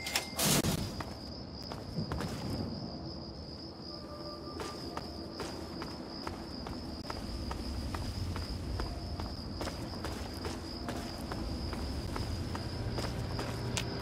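Footsteps crunch steadily over rubble outdoors.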